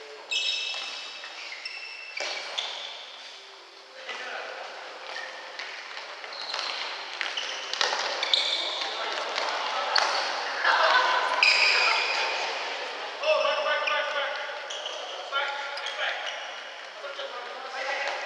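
Shoes squeak sharply on a wooden floor in a large echoing hall.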